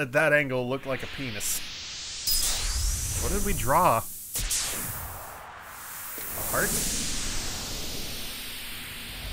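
A magical chime shimmers and swells.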